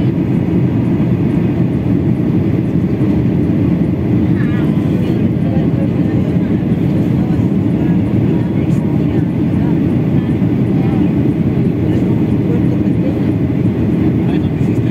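A jet airliner's engines roar steadily, heard from inside the cabin.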